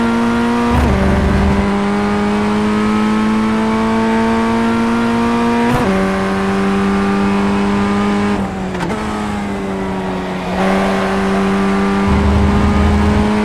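A racing car engine whines at high revs, rising through each gear and dropping sharply at each gear change.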